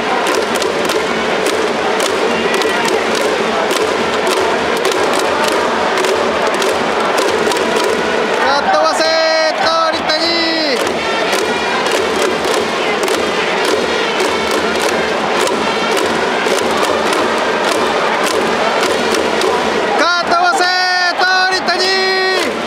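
A large stadium crowd cheers and chants throughout.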